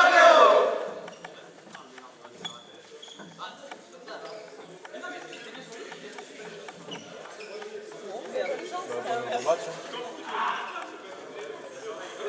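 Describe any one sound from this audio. Sneakers squeak and patter on a hard floor.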